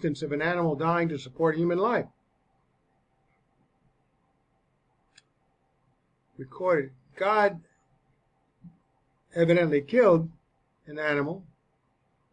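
A man speaks calmly into a close microphone, pausing between phrases.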